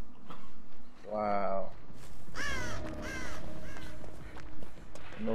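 Footsteps rustle quickly through tall grass.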